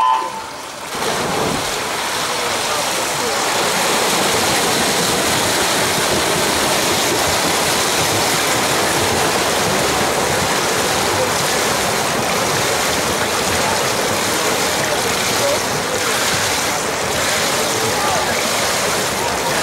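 Swimmers splash and churn the water as they race.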